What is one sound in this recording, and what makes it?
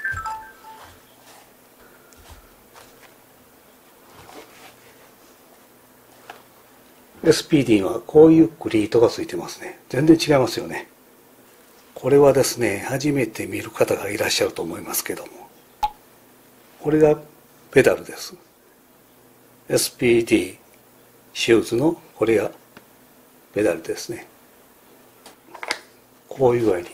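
Shoes are picked up and set down on a table with soft thuds.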